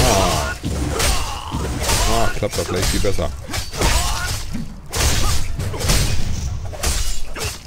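Swords clash in quick, ringing blows.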